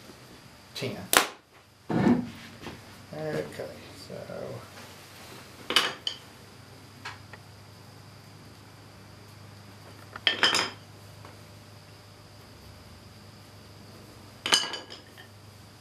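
Wooden sticks knock sharply against a workbench.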